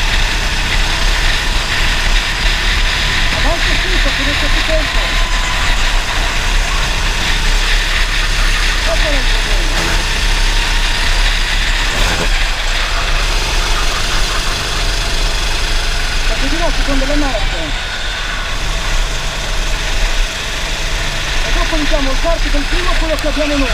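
Other racing kart engines whine ahead on the track.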